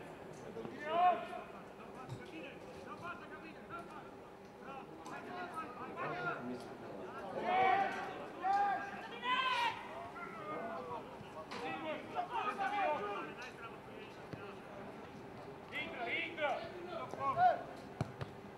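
Men shout to each other across an open field, heard from a distance.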